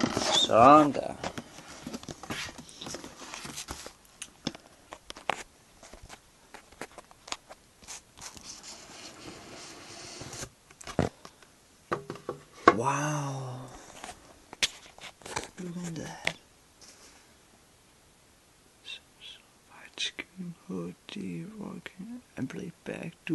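A cardboard box rustles and knocks as it is handled close by.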